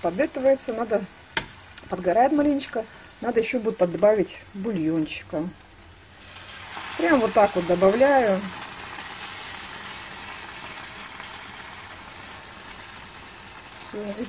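A metal ladle scrapes and stirs in a pan.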